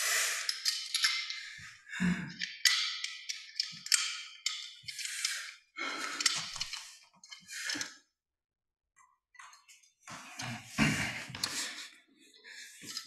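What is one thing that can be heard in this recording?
A young man whispers and breathes heavily close by.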